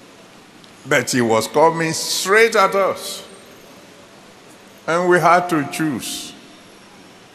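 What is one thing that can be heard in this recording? A middle-aged man preaches with animation into a microphone.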